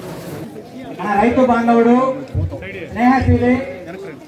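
A man speaks loudly and with emotion close by.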